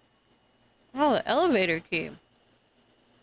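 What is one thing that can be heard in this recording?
A young woman exclaims loudly and excitedly into a close microphone.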